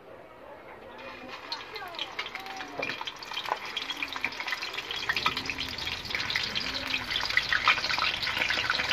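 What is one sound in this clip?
Sausages sizzle and crackle in hot oil.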